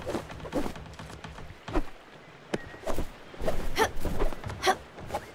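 Light, bouncy game sound effects play in short bursts.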